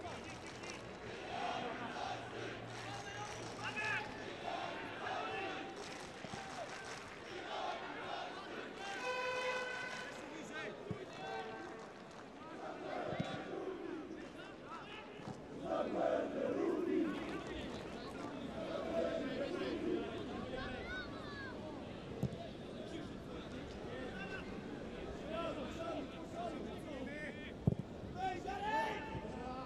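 A crowd murmurs and chatters in a large open stadium.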